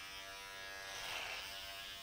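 An electric hair clipper buzzes steadily.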